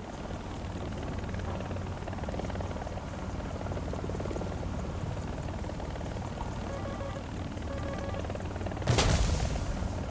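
A helicopter's rotor thumps steadily with a low engine drone.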